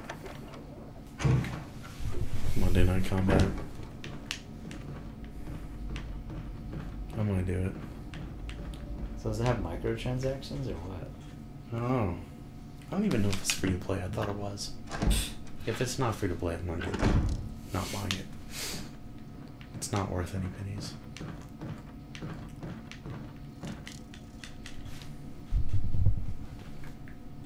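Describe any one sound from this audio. A heavy wooden door creaks slowly open.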